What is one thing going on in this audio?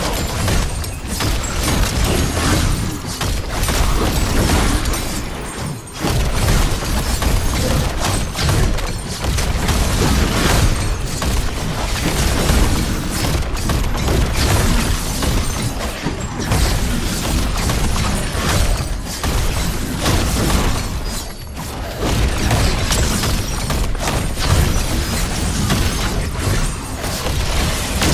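Gunfire and explosions crackle without pause.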